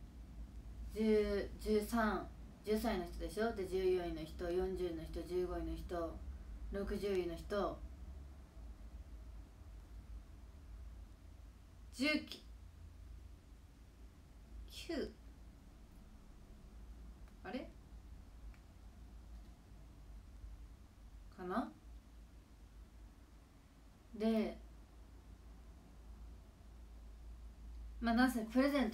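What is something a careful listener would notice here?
A young woman talks calmly and close by, with short pauses.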